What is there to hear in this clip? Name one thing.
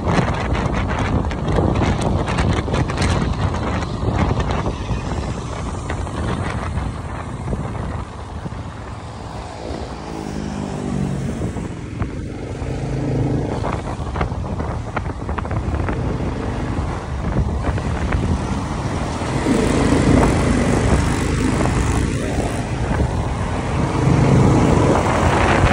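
Wind buffets a microphone on a moving motorcycle.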